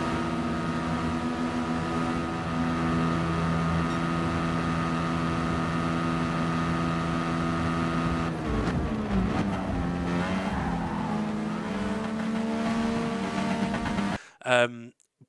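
A racing car engine roars at high revs, then drops in pitch as it slows.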